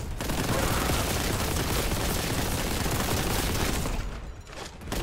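A rapid-fire gun blasts over and over.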